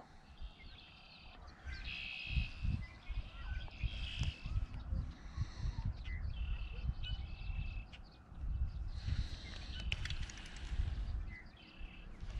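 A fishing reel whirs as line is wound in.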